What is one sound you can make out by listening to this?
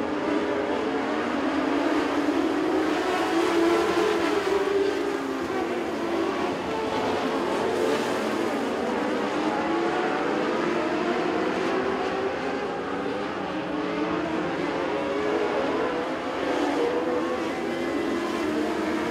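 Race car engines rise and fall in pitch as they pass close by.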